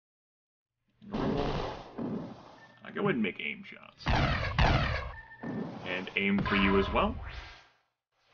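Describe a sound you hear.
Gunshots fire in short bursts.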